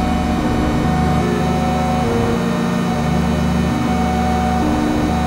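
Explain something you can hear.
A synthesizer plays steady, droning chords that change every second or so.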